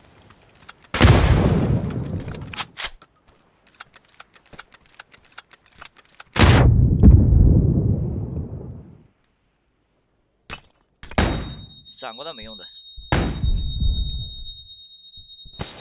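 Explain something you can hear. A grenade explodes with a loud, deep boom that rumbles away.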